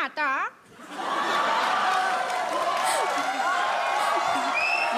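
A young woman laughs loudly into a microphone.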